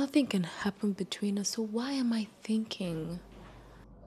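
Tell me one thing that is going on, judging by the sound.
A young woman speaks softly and emotionally up close.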